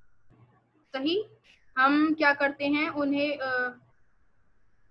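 A young girl sings clearly over an online call.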